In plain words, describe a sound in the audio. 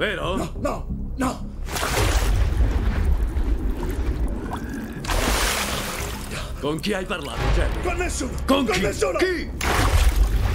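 A man groans and cries out in pain.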